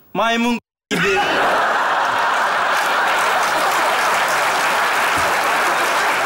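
A large audience laughs and applauds in an echoing hall.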